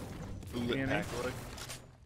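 A pickaxe strikes a wall with a sharp crack.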